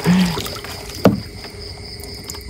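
A paddle splashes in water.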